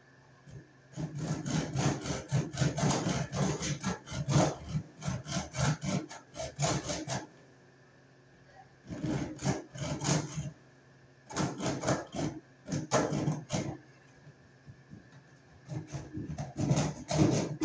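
A hand pump is worked in quick, rhythmic strokes.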